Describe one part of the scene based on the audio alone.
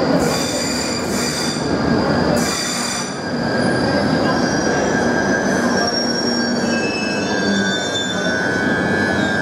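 An underground train rumbles and whines as it pulls along the platform in a large echoing station.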